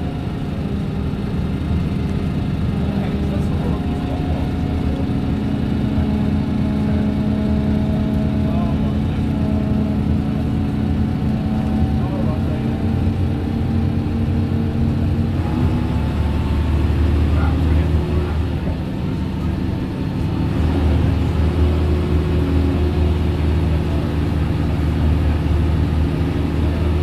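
Tyres hum on the road beneath a moving bus.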